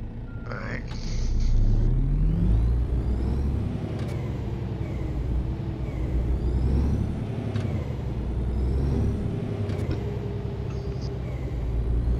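A truck engine revs up and grows louder as the truck pulls away.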